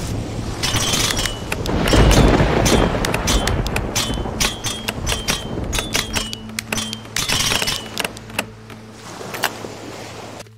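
Metal lock pins click and scrape as a pick works them.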